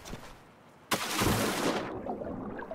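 Something plunges into water with a splash and a muffled underwater rush.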